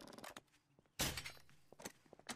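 A crossbow fires a bolt with a sharp twang.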